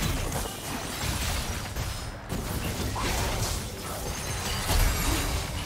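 Spell effects zap and burst in a game fight.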